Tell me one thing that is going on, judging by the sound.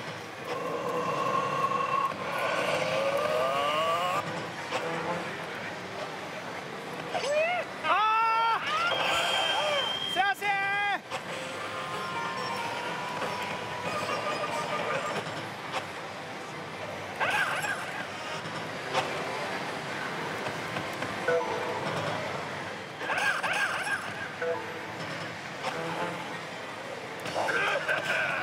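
A slot machine plays loud electronic music and jingles.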